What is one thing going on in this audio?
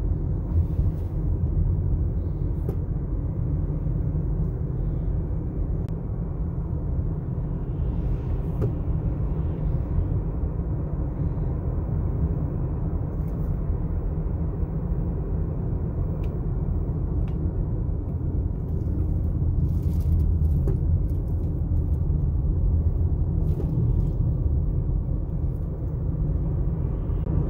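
Tyres roll steadily on the road, heard from inside a car.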